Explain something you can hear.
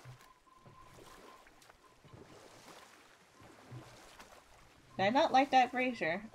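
Oars splash softly as a small boat is rowed through water.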